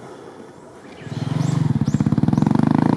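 A single dirt bike engine roars as it climbs close by.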